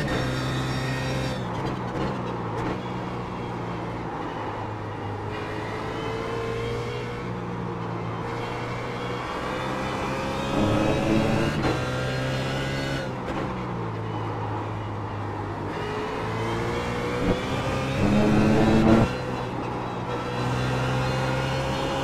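A racing car engine revs high, shifting up and down through the gears.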